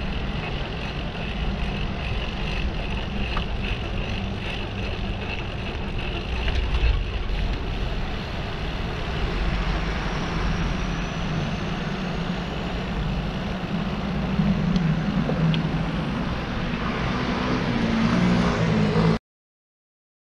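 Bicycle tyres hum on the road.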